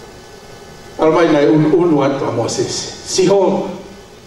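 A man sings loudly into a microphone, heard through loudspeakers in an echoing room.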